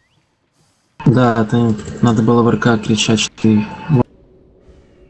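Spell effects crackle and whoosh in a computer game.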